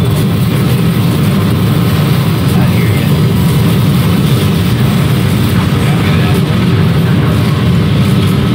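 Jet aircraft roar overhead.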